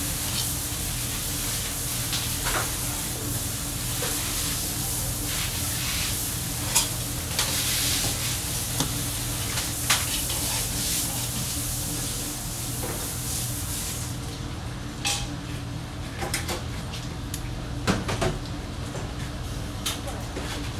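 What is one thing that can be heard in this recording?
A knife slices through a fish fillet against a cutting board.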